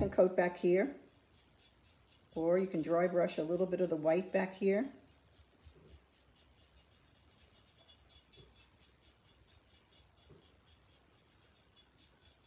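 A paintbrush brushes softly against a ceramic figure.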